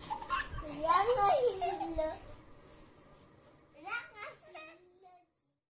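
A baby babbles and squeals happily up close.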